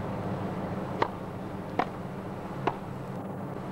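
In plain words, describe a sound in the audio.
A tennis ball is struck back and forth with rackets in sharp pops.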